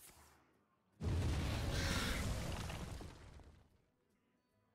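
A fiery blast roars and crackles in a computer game.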